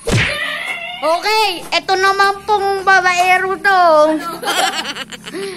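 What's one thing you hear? A child shouts and sings out in a high voice nearby.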